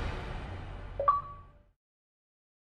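A short electronic notification chime sounds.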